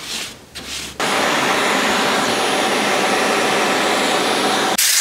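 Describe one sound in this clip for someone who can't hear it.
A vacuum cleaner runs with a steady, loud whoosh.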